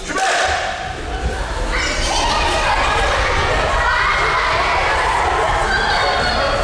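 Children run and shuffle across padded mats.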